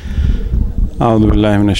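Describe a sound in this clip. A man chants in a sustained singing voice through a microphone.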